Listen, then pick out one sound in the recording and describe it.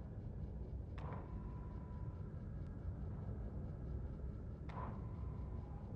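A soft menu chime rings as a page turns.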